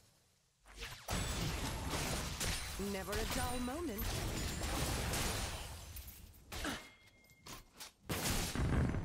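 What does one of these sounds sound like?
Magic blasts whoosh and crackle in a video game battle.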